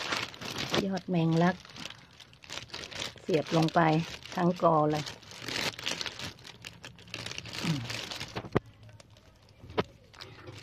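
Plant stems rustle as a hand handles them.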